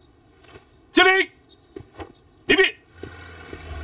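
Men shout in unison from a short distance.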